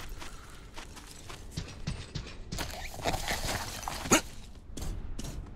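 Footsteps crunch over dry ground.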